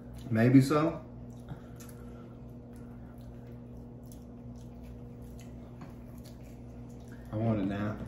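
Crunchy chips crackle as they are bitten and chewed.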